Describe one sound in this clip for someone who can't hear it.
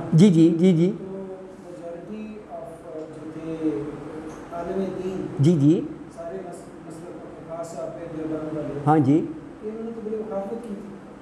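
An elderly man speaks calmly and close up through a lapel microphone.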